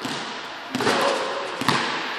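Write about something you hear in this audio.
A basketball hits a backboard and rim with a clang.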